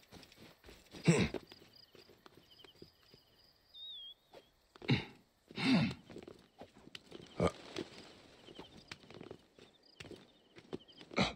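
Hands grab and scrape on stone while climbing.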